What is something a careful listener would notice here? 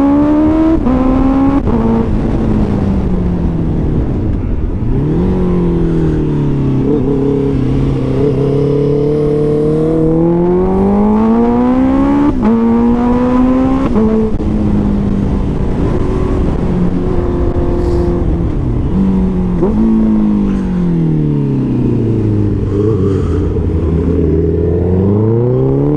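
A motorcycle engine revs up and down as it climbs a winding road.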